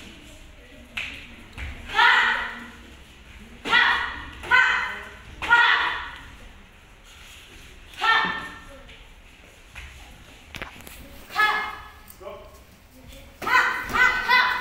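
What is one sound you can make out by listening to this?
Kicks thud against padded chest guards.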